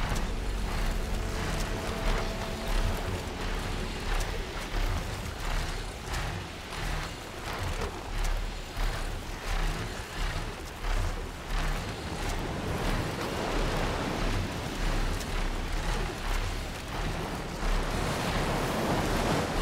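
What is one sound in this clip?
Large wings beat in a steady rhythm.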